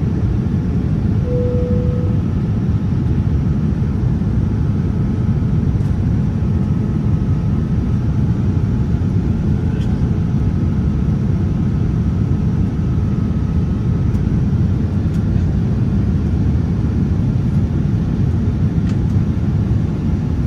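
A jet engine roars steadily in an airliner cabin.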